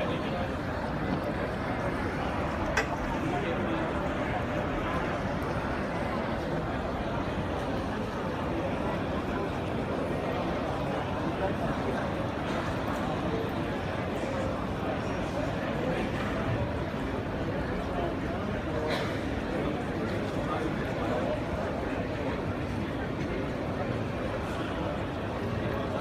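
Water in an aquarium gurgles and hums steadily.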